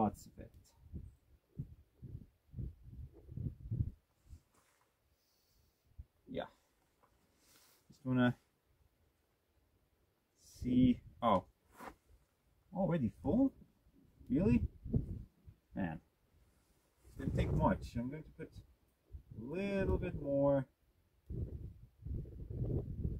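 A jacket rustles close to the microphone.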